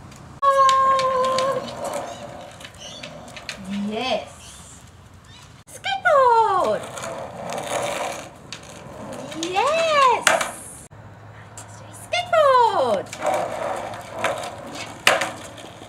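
Skateboard wheels roll across concrete.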